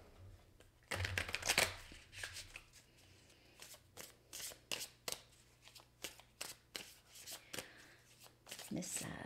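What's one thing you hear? Cards riffle and snap as a deck is shuffled.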